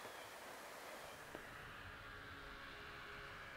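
A snowmobile engine drones in the distance.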